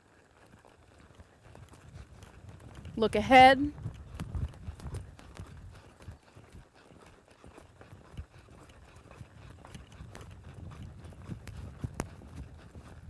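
A horse's hooves thud on soft sand as it lopes.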